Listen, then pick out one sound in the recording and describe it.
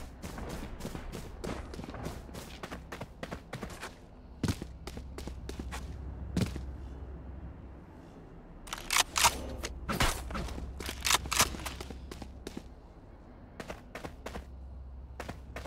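Footsteps tap quickly on a hard stone floor.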